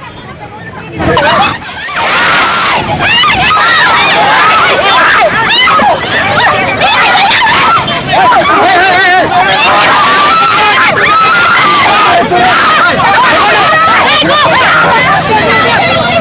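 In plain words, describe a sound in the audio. A crowd of young women shout and clamour loudly outdoors.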